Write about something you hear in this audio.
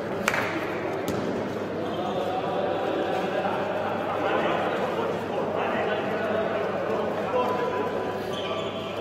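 Men call out to each other in a large echoing hall.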